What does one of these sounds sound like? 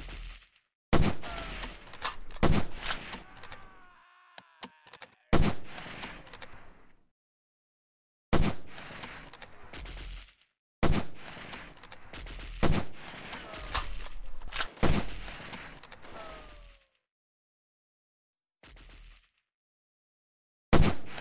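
Rifle shots crack loudly, one at a time, each followed by a rolling echo.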